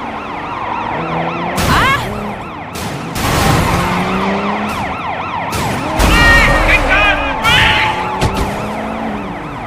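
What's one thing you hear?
A police siren wails throughout.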